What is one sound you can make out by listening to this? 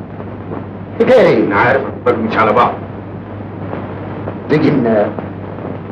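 A middle-aged man speaks calmly in reply.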